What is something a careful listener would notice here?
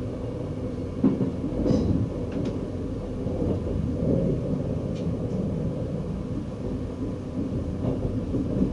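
Train wheels clatter over rail joints and switches.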